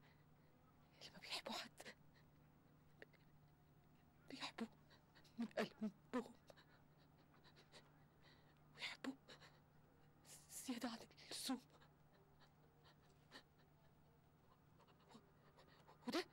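A woman speaks softly and haltingly, close by.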